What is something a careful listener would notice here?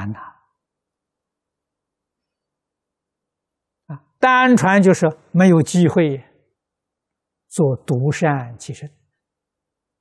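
An elderly man speaks calmly and warmly into a close microphone, with long pauses.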